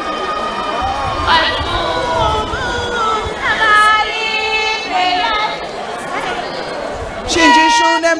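A large crowd of women sings together in loud, high voices.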